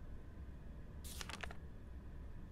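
A paper page rustles briefly as it turns.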